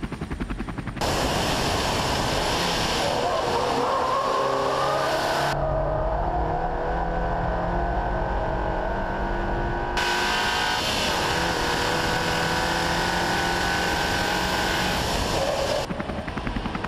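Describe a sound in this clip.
A car engine roars at high revs, rising in pitch through the gears.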